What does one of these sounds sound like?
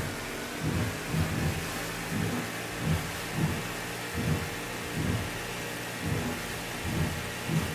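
Water rushes and splashes against a boat's hull.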